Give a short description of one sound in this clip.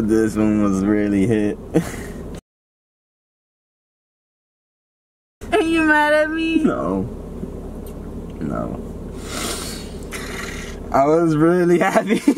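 A young woman laughs loudly nearby.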